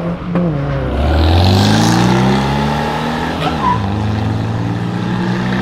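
An old car engine revs loudly as it accelerates.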